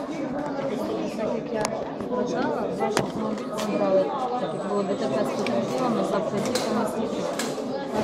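Paper rustles as a young woman handles a sheet.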